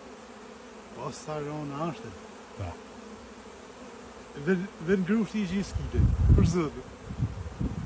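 A man speaks close by.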